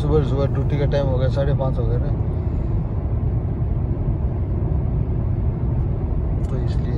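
A car drives at speed with a steady, low rumble of tyres on the road.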